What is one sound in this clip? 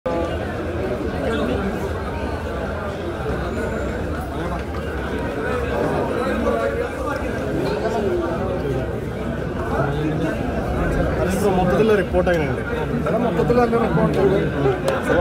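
A crowd of men chatter and call out all around, close by.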